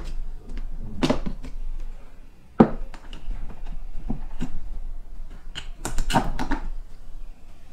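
A plastic lid clicks and knocks against a container.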